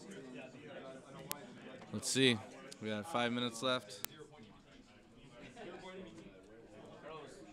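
A small plastic piece clicks softly on a table.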